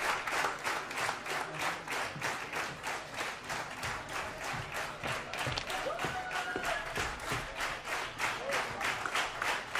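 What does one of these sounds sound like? An audience claps steadily in rhythm in a large hall.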